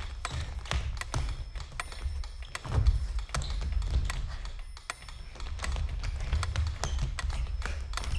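Feet stamp and slap on a wooden stage floor.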